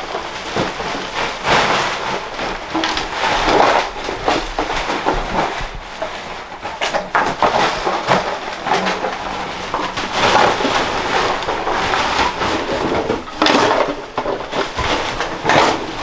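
Plastic garbage bags rustle and crinkle as trash is stuffed into them.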